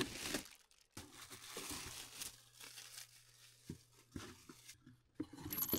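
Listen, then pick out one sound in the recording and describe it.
A plastic bag crinkles and rustles in hands.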